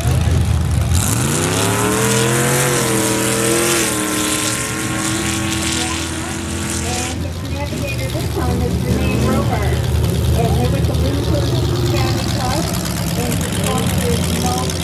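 A truck engine roars and climbs in pitch as the truck speeds away.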